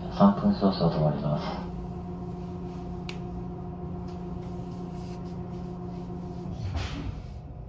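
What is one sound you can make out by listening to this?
A train's engine hums steadily, then falls quiet.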